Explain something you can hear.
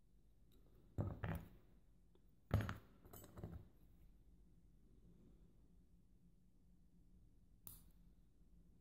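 Small metal lock parts click softly.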